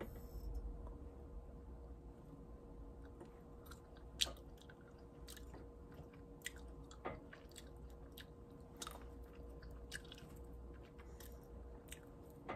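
A woman chews and smacks her lips close by.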